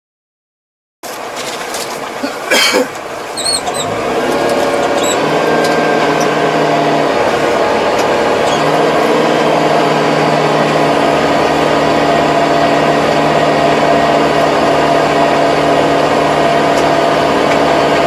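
A tractor engine drones steadily up close.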